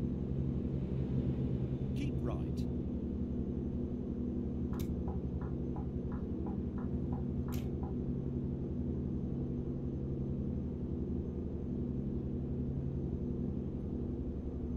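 A truck engine hums steadily at a low pitch.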